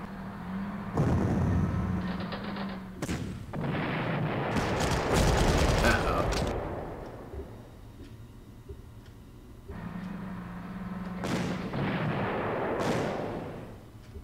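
A tank gun fires with a loud, rumbling blast.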